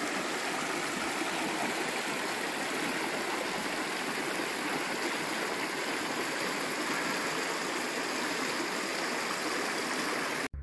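A small stream babbles and splashes steadily over rocks close by.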